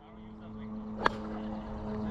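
A golf driver strikes a ball off a tee with a sharp crack.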